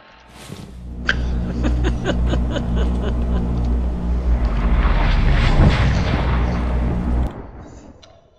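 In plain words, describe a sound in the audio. An electric hum crackles and swells into a rushing whoosh, then fades away.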